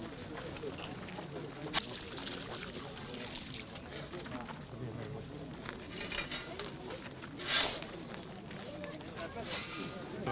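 A shovel scrapes and thuds into loose soil.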